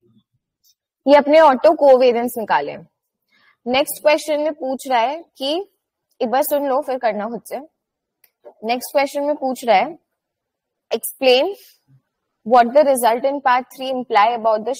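A young woman speaks calmly through a microphone, explaining in short phrases.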